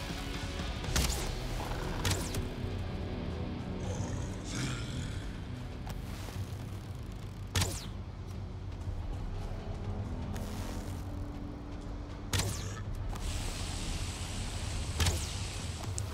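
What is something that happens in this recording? A bow twangs sharply as arrows are shot, again and again.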